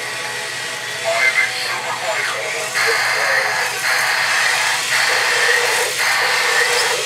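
Toy robots play buzzing electronic sound effects.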